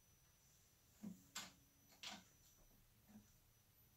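A guitar knocks and bumps as it is handled and turned.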